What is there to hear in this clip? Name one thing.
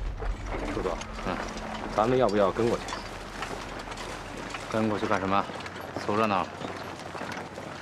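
Two men talk quietly.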